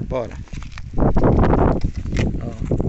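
Footsteps crunch on dry grass and sandy ground.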